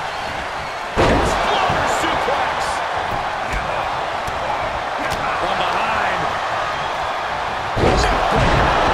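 Heavy thuds of bodies slamming onto a wrestling mat ring out.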